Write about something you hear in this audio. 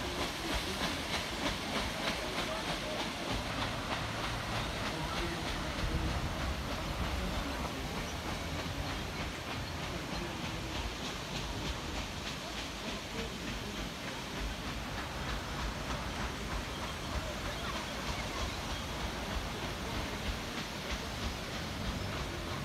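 A paddle steamer's engine chugs steadily.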